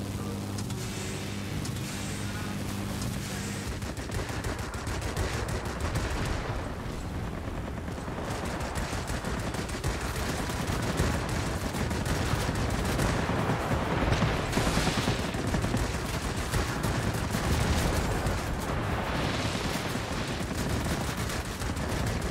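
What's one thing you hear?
A propeller plane's engine roars steadily.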